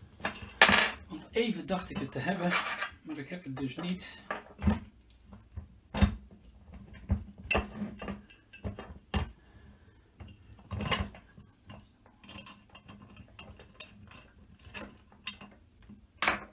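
Metal rails clink and knock as they are handled.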